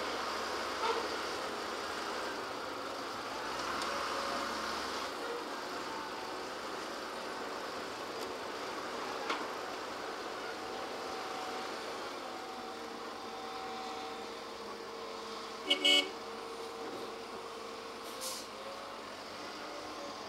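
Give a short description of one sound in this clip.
A tractor engine rumbles steadily in the distance outdoors.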